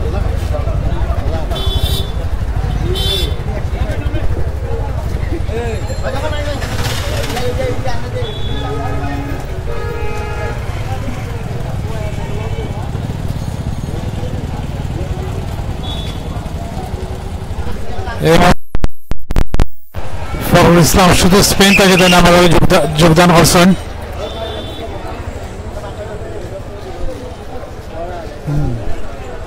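A crowd of people talks and murmurs outdoors.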